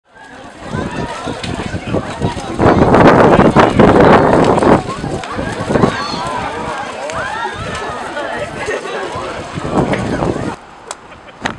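A crowd outdoors cheers and shouts excitedly.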